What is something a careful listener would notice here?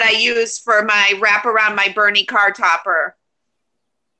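A young woman speaks calmly and clearly through an online call.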